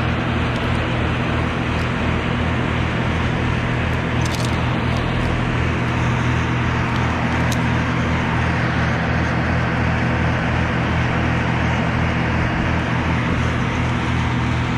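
A chainsaw engine idles steadily close by.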